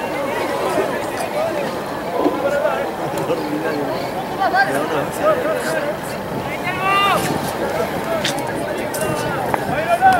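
A large crowd chatters and calls out in the stands outdoors.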